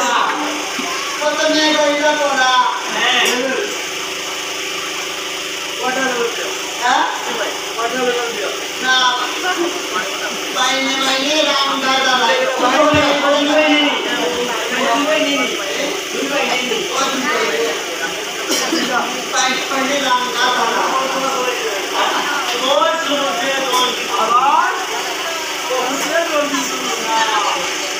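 A man sings loudly with a wavering voice.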